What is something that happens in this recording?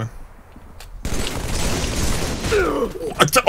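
Gunfire rattles.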